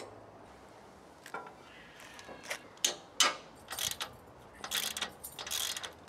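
Metal parts clink and knock as a trailer coupling is fitted.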